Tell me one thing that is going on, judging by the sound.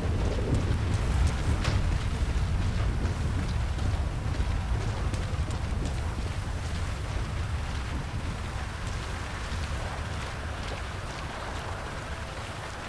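Footsteps crunch quickly over dry ground and brush.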